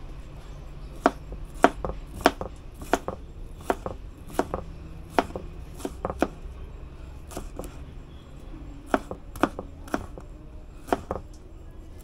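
A knife chops through vegetables on a plastic cutting board with sharp, steady taps.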